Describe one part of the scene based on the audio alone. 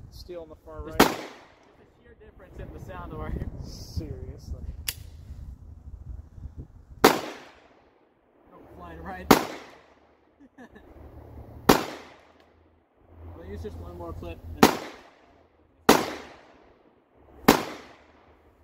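Gunshots crack loudly outdoors, one every few seconds, each echoing away.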